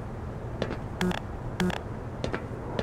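A control panel beeps twice.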